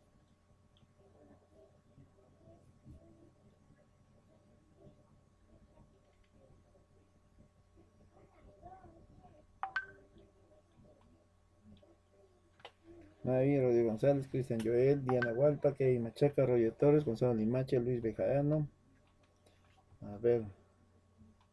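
A man speaks calmly through a microphone, quietly at first and then louder.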